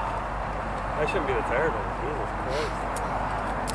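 A man speaks briefly from a distance.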